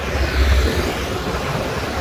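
A motorbike passes by.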